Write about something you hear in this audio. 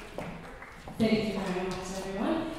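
A woman sings with a microphone.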